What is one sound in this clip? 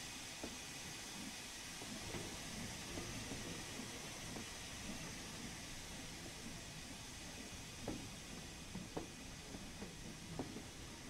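Railway carriages roll slowly past, wheels clacking over rail joints.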